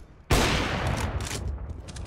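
A rifle fires with a loud crack.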